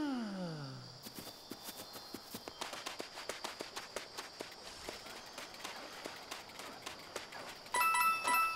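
Quick light footsteps patter across the ground.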